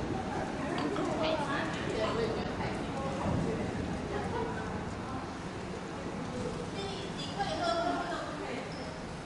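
A man talks casually nearby in an echoing hall.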